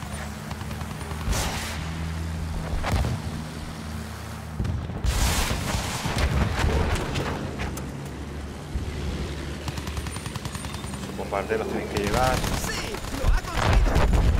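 Rifle shots crack now and then.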